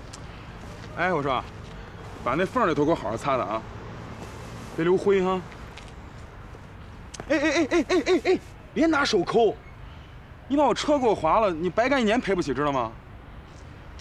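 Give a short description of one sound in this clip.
A man speaks sharply and with animation.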